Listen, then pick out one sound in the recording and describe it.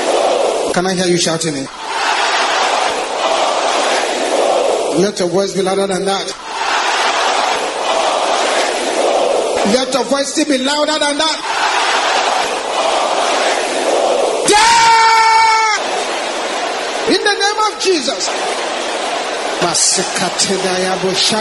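A man prays loudly and with fervour into a microphone.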